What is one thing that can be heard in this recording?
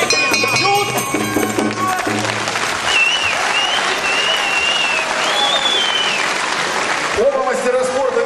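A crowd cheers and whistles in a large echoing hall.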